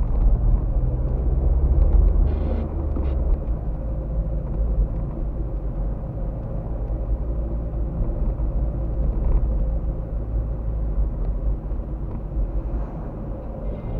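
Tyres roll with a low rumble on the road.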